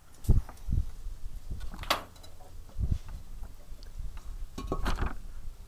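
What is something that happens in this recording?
Clothing rustles as a person is moved about.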